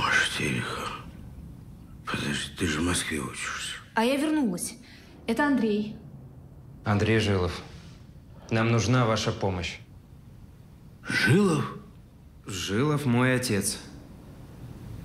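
A man speaks in a strained, emotional voice close by.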